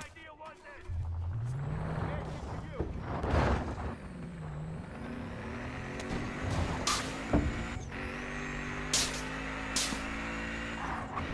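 A car engine revs and accelerates as the car drives off.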